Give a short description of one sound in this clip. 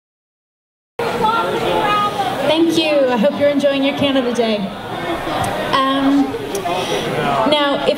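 A young woman talks cheerfully into a microphone.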